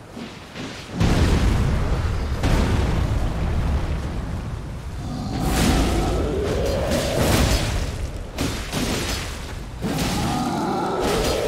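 A giant creature roars and stomps heavily.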